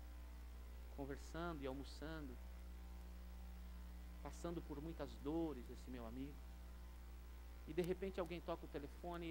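A man speaks calmly into a microphone, heard through loudspeakers in a large room, with pauses between phrases.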